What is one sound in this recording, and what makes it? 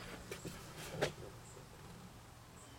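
A hand taps on a plastic door panel.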